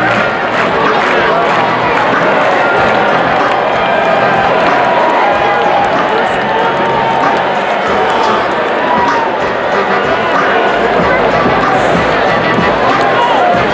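A large crowd cheers and roars loudly in a huge open stadium.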